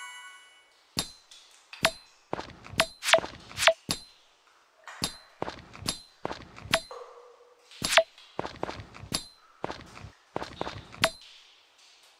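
A hammer strikes rock with sharp, repeated cracks.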